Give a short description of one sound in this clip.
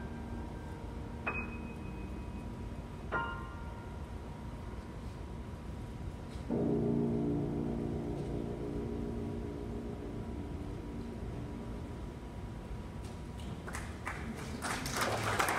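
A piano plays softly in an echoing hall.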